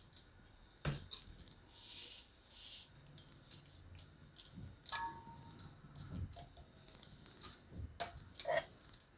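Bangles clink on a wrist.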